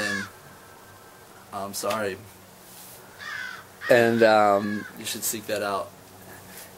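A young man speaks casually and close by.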